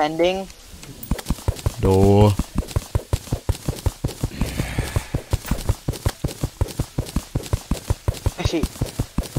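A pickaxe chips rapidly at dirt.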